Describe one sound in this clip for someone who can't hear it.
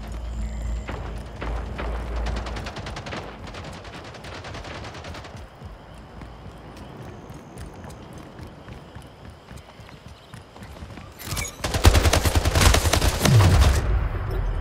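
Rapid automatic gunfire rattles in bursts.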